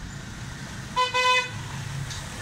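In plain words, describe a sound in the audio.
A horn toots briefly.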